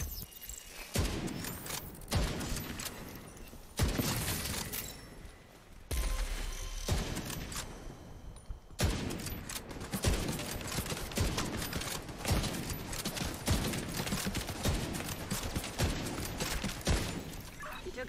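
A rifle fires loud shots in quick bursts.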